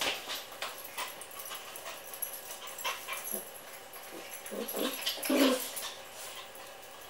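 Dog claws click and scrabble on a hard floor.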